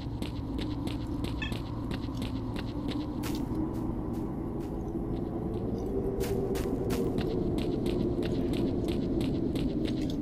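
Footsteps fall on hard ground.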